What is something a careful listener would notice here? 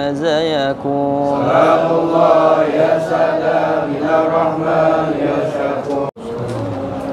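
A group of men chant together loudly in an echoing hall.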